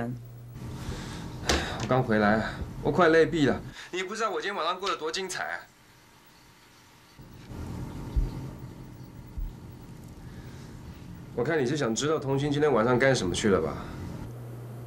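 A man speaks wearily over a phone, close by.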